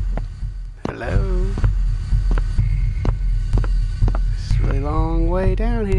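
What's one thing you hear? A young man talks into a microphone close by.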